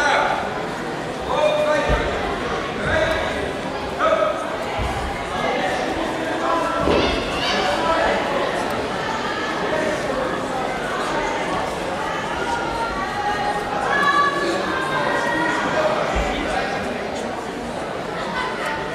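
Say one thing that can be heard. A crowd of people chatters throughout a large echoing hall.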